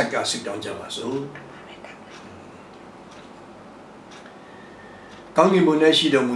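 An elderly man prays aloud in a calm voice close to a microphone.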